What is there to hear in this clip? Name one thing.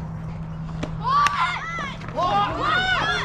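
Young women shout and cheer loudly outdoors.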